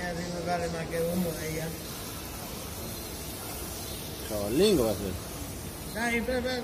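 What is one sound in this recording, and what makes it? Liquid pours and hisses into a bucket.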